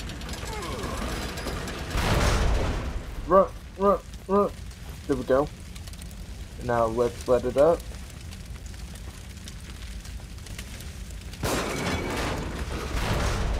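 Flames roar and crackle nearby.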